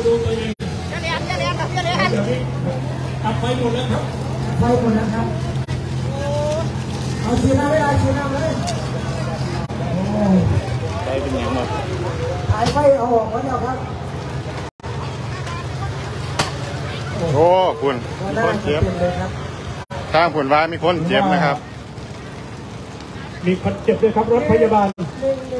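Several men talk loudly and excitedly nearby.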